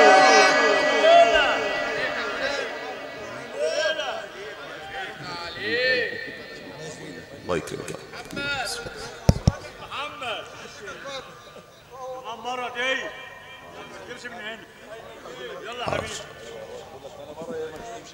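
A man chants in a long, wavering voice through a loudspeaker.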